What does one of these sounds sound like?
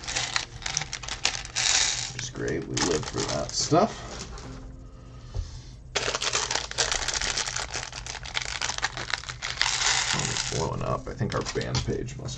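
Small plastic bricks clatter and click in a tray.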